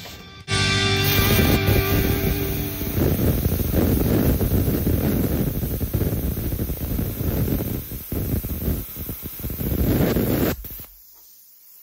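A plasma cutter roars and crackles as it cuts through steel.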